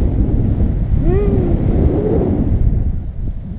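A woman calls out in a rising and falling voice.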